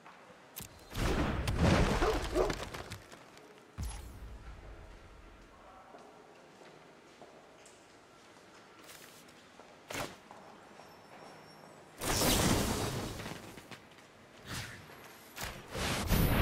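Digital card game sound effects chime and whoosh in short bursts.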